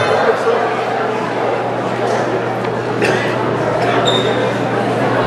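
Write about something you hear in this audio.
A crowd murmurs and chatters in the background outdoors.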